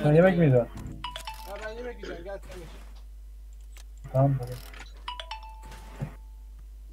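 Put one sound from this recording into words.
A short electronic chime sounds twice.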